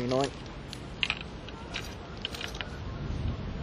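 A fishing reel clicks as the line is handled.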